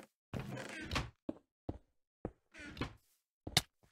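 Blocks are placed with short, dull thuds.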